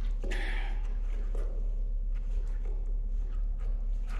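Footsteps shuffle slowly on a hard floor.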